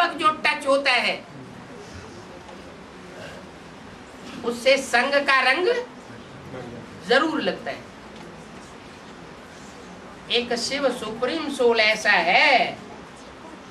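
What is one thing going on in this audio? An elderly man talks calmly and close by, in short bursts with pauses.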